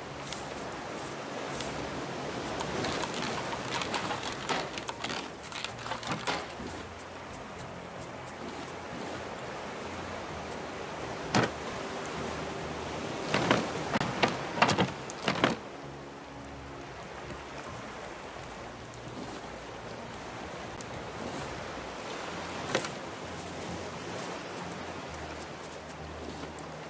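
Game menu clicks tap sharply now and then.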